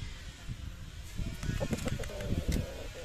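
A rooster crows close by.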